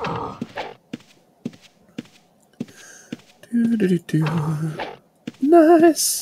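Footsteps thud at a steady walking pace.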